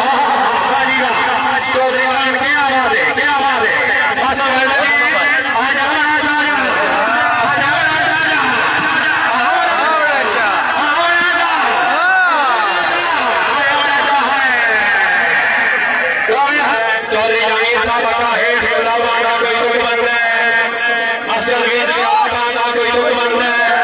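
A large crowd cheers and shouts outdoors.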